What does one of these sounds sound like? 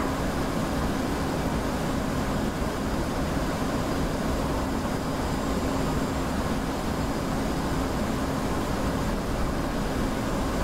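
A jet engine roars steadily.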